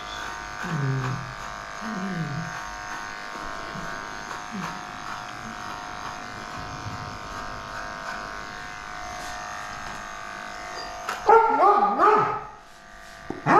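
Electric clippers buzz steadily while trimming hair.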